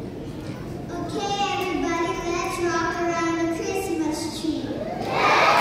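A children's choir sings in a large hall.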